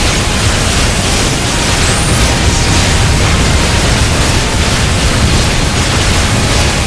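Deep booming rumbles under the blasts.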